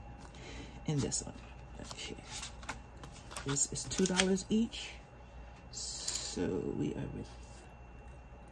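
Pages and plastic sleeves of a binder rustle as they are flipped.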